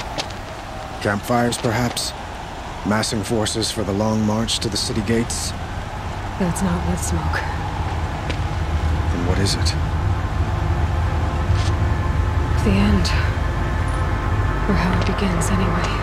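A young woman speaks calmly up close.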